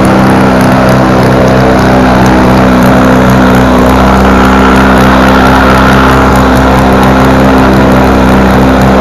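A small engine roars loudly and steadily close by.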